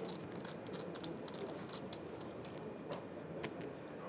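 Poker chips click and clatter close by.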